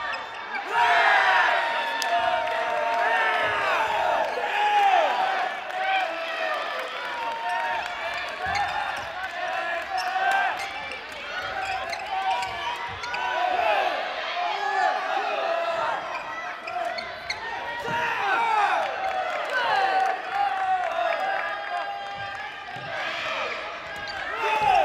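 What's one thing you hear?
Sneakers squeak sharply and often on a hard floor in a large echoing hall.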